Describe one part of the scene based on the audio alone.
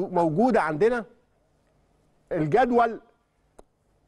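A man speaks through a microphone with animation, in short bursts.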